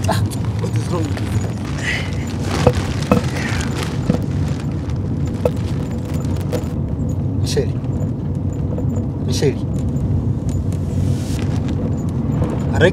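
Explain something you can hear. A vehicle engine rumbles steadily from inside the vehicle.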